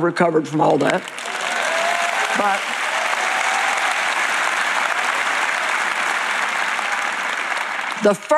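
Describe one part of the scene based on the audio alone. A large crowd applauds and cheers.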